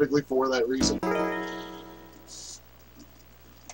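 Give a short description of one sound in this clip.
A game console plays a short startup chime.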